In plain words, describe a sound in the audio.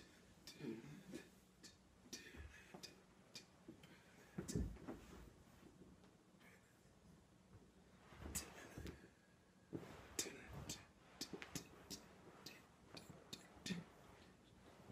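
A body shuffles and thumps on a carpeted floor.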